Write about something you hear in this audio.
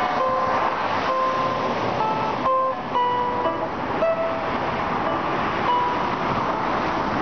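A guitar plays single plucked notes outdoors.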